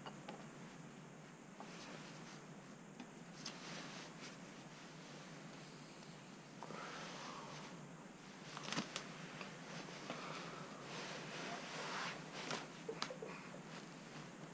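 A screwdriver scrapes and clicks against metal parts.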